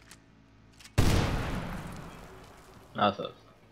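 A grenade explodes with a heavy boom.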